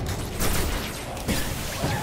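An electric bolt crackles and zaps.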